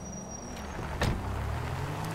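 A car door thuds shut.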